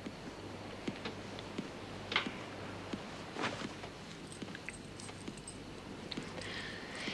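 A man's footsteps thud softly across the floor.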